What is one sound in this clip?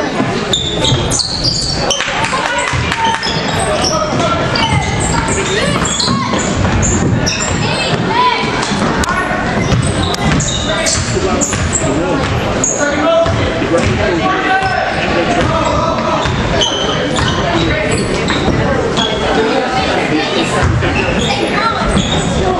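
A basketball bounces on a hardwood floor in a large echoing gym.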